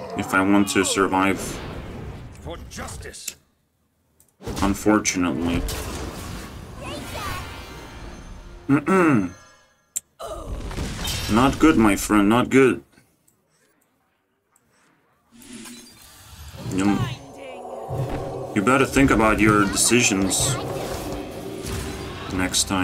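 A game plays magical chimes and whooshing effects.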